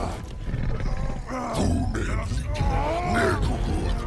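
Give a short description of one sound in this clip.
A giant creature growls and snarls up close.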